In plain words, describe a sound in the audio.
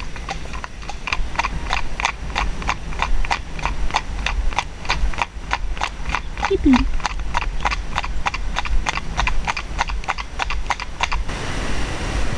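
Horse hooves clip-clop steadily on a paved road.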